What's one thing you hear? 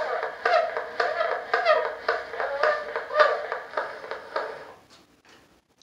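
An old phonograph plays a faint, scratchy recording with steady crackles.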